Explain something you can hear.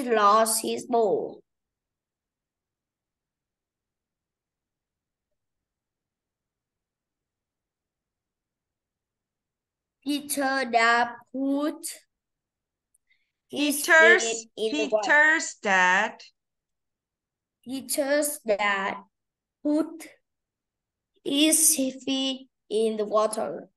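A woman speaks clearly, like a teacher, over an online call.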